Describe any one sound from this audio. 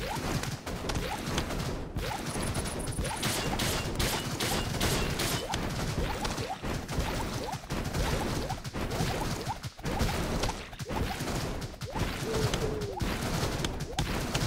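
Quick game blasts and hit sounds pop over and over.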